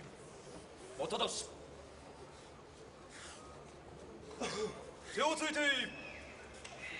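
A man calls out in a long, drawn-out chant in a large echoing hall.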